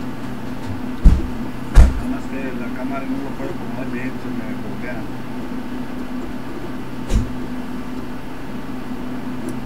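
Electronic equipment hums steadily.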